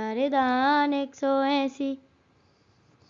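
A man sings a short line of a tune, close up.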